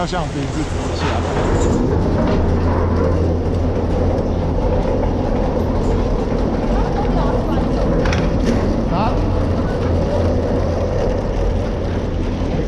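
Skis scrape and hiss over packed snow close by.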